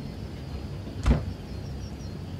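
A wooden wardrobe door clicks open.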